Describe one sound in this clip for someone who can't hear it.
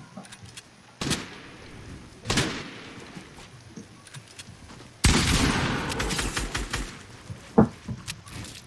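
Gunshots from a video game fire in quick bursts.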